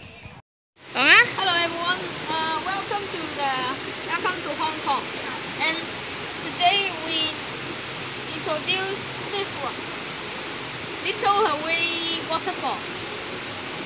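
A boy speaks with animation close by.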